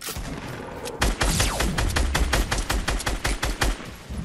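A gun fires rapid shots in a game.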